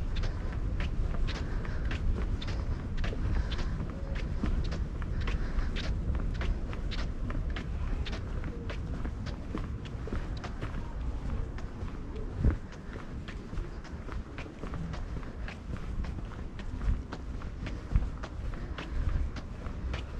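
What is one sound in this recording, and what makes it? Footsteps tread steadily on a paved path.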